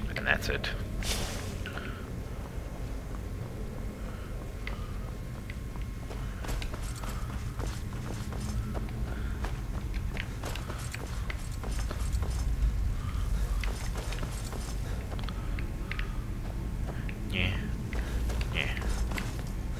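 Footsteps scuff over rough ground.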